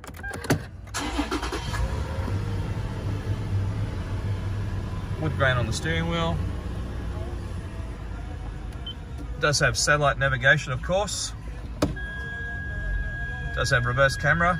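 A car engine starts and idles with a low, steady rumble.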